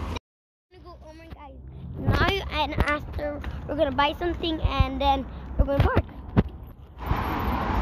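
A girl talks close up with animation.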